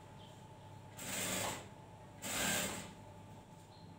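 A sewing machine whirs in short bursts.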